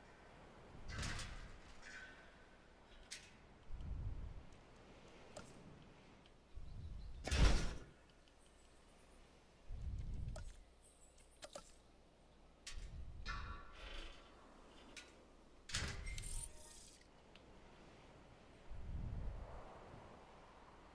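Game interface sounds click and whoosh now and then.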